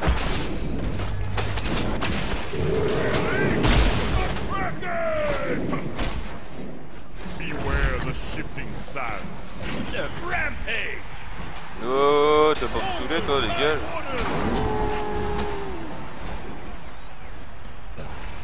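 Game spells whoosh and crackle.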